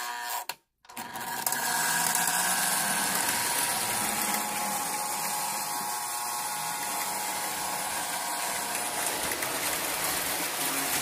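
A model train rolls along the track with a steady whirring rumble.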